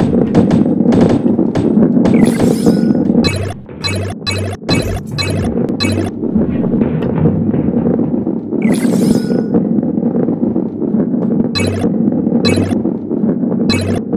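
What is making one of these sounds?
A ball clatters against obstacles.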